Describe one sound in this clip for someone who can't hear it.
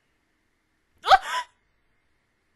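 A young woman says a short word close to a microphone.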